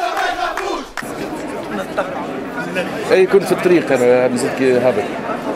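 A man speaks close up over a noisy crowd.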